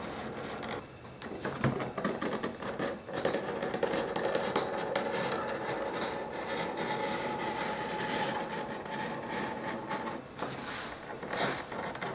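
A blade scrapes as it cuts through leather.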